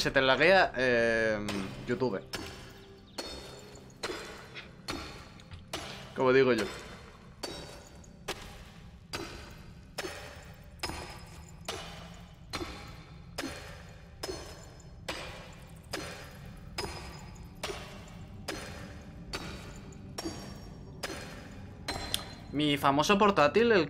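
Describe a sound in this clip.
A pickaxe strikes rock in a steady rhythm.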